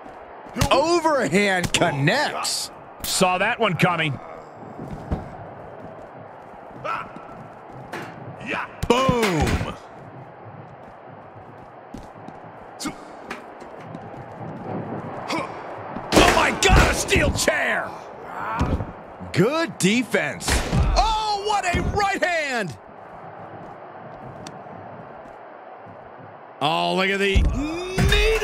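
Heavy blows thud as two wrestlers brawl.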